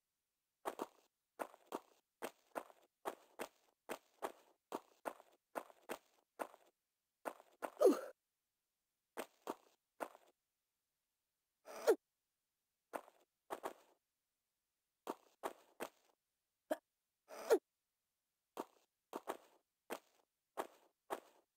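Footsteps tap quickly on a stone floor in an echoing room.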